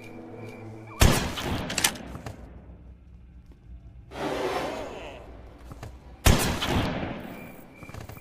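A shotgun fires with a loud, echoing blast.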